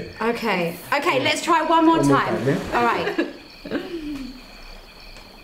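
A young woman speaks nearby in a calm, chanting voice.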